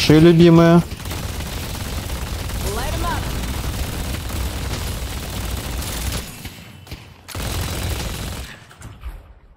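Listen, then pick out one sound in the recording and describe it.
Weapons fire and ability blasts crackle in a fight.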